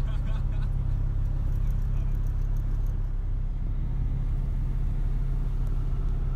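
A car engine rumbles low and steady from inside the cabin.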